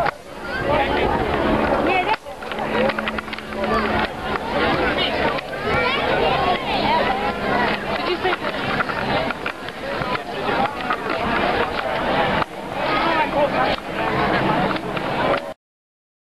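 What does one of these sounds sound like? A crowd of people chatters and calls out outdoors nearby.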